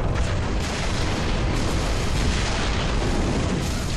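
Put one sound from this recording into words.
Weapon fire crackles in quick bursts.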